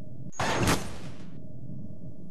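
A car tumbles and crashes on gravel.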